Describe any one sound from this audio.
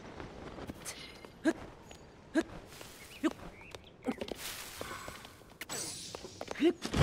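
Hands grip and scrape on tree bark with each climbing pull.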